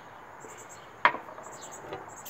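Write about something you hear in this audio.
A glass is set down on a hard tabletop with a sharp knock.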